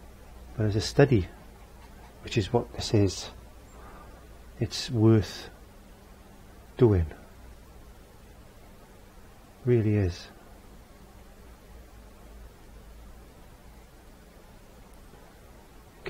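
A paintbrush strokes softly across a canvas.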